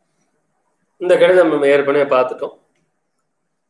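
An elderly man reads aloud in a chanting voice, close by.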